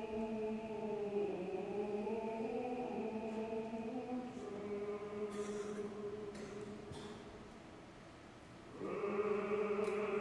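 A woman sings in a full operatic voice in a large echoing hall.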